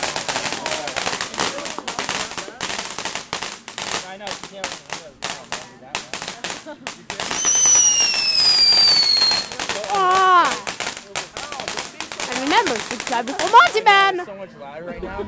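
Firework fountains crackle and pop rapidly.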